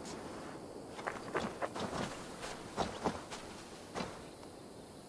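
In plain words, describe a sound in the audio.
Footsteps crunch over grass and gravel.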